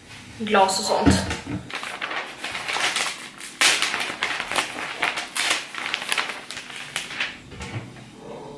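Magazine pages rustle and flap as they are turned.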